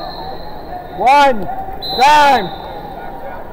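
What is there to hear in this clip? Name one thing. A man shouts loudly twice.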